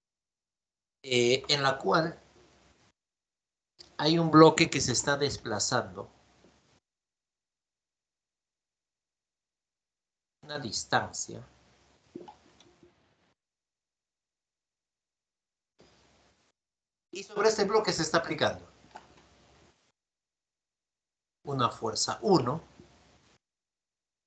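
A man speaks calmly through a microphone in short phrases with pauses.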